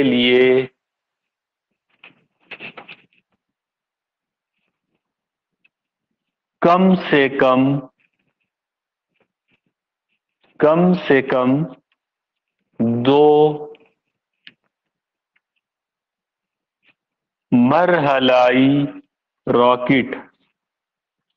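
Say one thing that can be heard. A middle-aged man speaks calmly in short phrases, close to the microphone.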